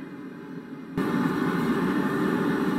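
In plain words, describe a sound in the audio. A forge roars steadily.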